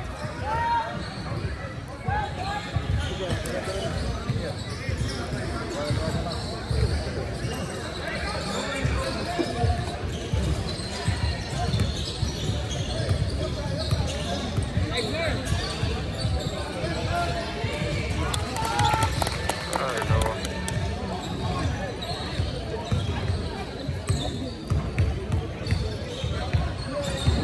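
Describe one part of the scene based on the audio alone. Voices of a crowd of spectators chatter throughout a large echoing gym.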